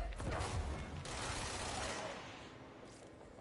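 Debris clatters and crashes down.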